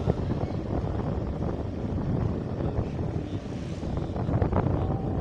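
A motorcycle engine hums while riding.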